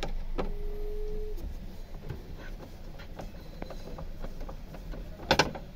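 A screwdriver scrapes and clicks against plastic trim.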